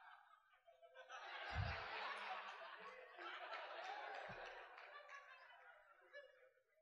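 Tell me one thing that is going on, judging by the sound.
An audience laughs in a large hall.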